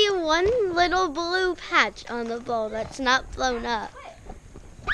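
A young girl talks with animation close by.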